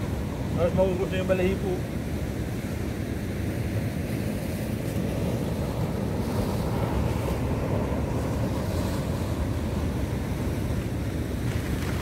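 Sea waves wash against rocks nearby.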